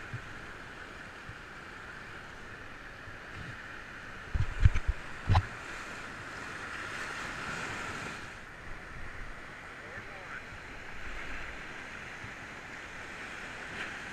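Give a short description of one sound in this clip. Whitewater rapids rush and roar close by.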